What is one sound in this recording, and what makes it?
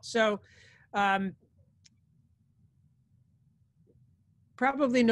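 A middle-aged man speaks calmly into a computer microphone, heard as if over an online call.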